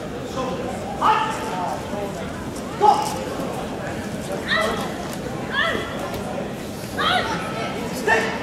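A man referee calls out commands.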